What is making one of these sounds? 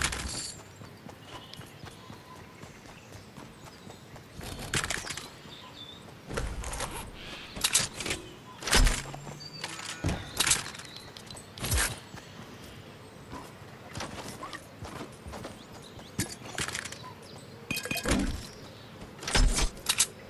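Footsteps patter quickly on dirt.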